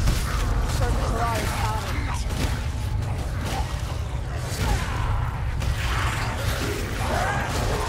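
Rat creatures squeal and screech.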